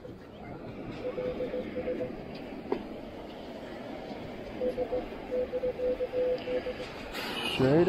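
A metal detector beeps in quick pulsing bursts.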